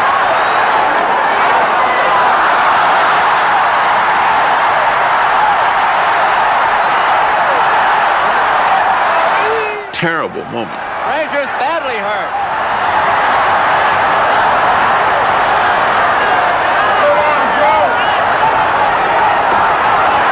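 A large crowd roars loudly and steadily.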